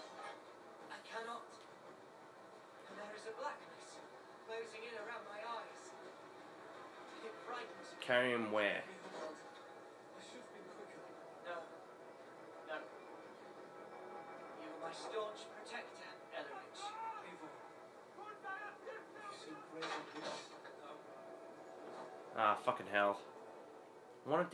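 A video game plays from a television loudspeaker.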